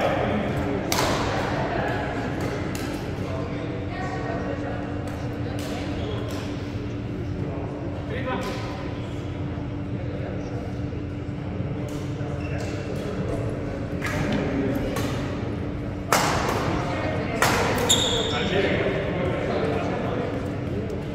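Rackets hit shuttlecocks with sharp pops in a large echoing hall.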